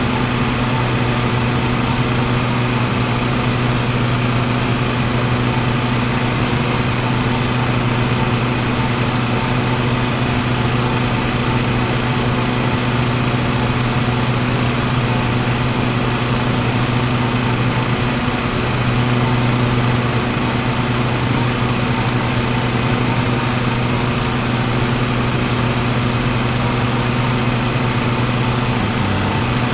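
A riding mower engine hums steadily.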